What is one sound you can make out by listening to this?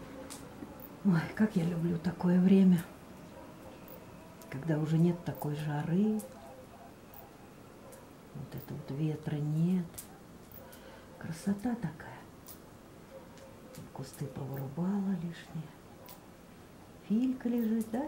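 A woman speaks close by in short phrases with pauses between them.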